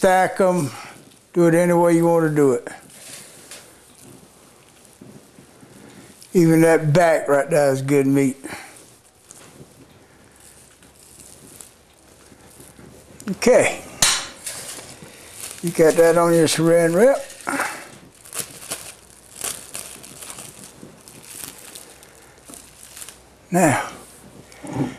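An older man speaks calmly and clearly into a microphone, in bursts with pauses.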